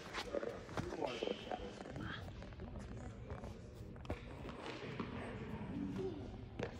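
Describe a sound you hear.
Tennis rackets strike balls with sharp pops in a large echoing hall.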